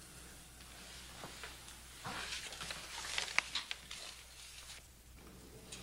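Papers rustle softly as they are handled.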